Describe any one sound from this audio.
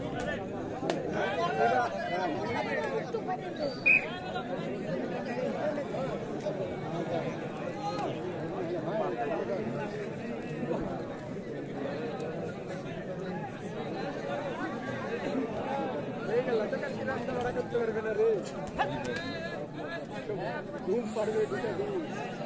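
A large outdoor crowd chatters and shouts throughout.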